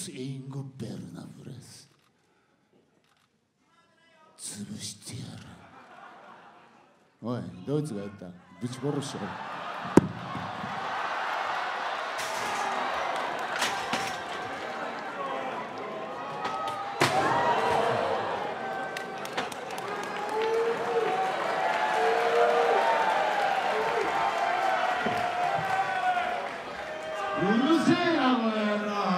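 A middle-aged man speaks through a microphone over loudspeakers in a large echoing hall.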